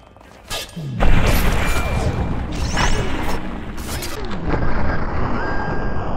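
A pistol fires loud, booming shots.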